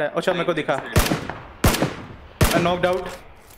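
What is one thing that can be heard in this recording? Rifle shots crack sharply, several times in quick succession.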